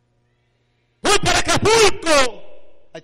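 A man preaches loudly and with passion through a microphone, echoing in a large hall.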